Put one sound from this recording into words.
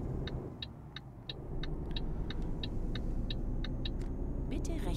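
A turn signal ticks in a steady rhythm.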